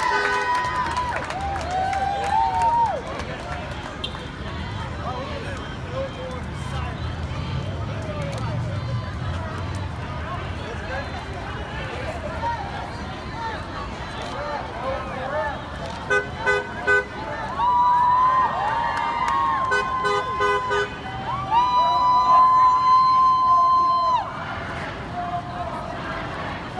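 A crowd of marching people shout and chant outdoors.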